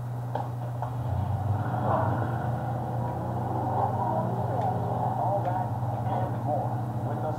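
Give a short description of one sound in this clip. A car engine revs and rumbles through a television speaker.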